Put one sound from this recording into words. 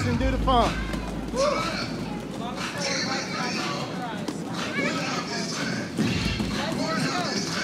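Children's voices chatter and shout in a large echoing hall.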